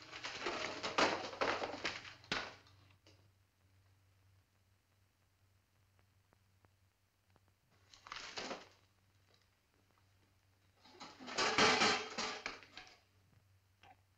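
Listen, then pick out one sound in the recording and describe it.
Paper parcels rustle and crackle as they are handled.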